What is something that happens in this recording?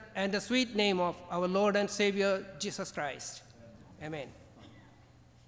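An elderly man speaks calmly through a microphone and loudspeakers in a large echoing hall.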